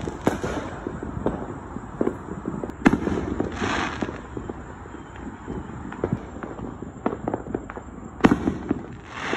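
Fireworks bang and boom nearby.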